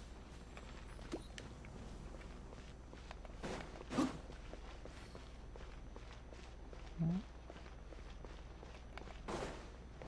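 Footsteps patter quickly on sand and gravel.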